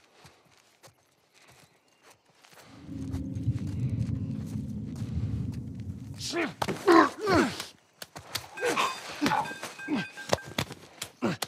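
Footsteps crunch softly on gravel and grass.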